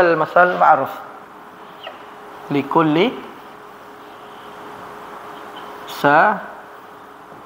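A man speaks in short bursts, close by.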